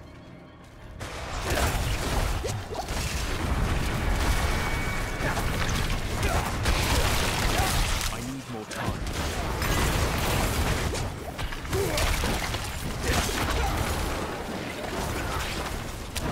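Fiery blasts and combat effects roar and crackle from a game.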